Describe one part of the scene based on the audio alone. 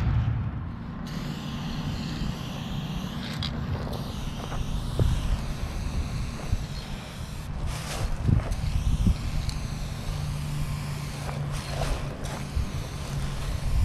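A spray can hisses in bursts.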